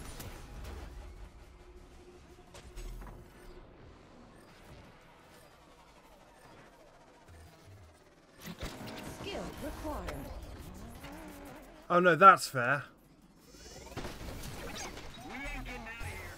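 Metal crashes and scrapes as a car is wrecked.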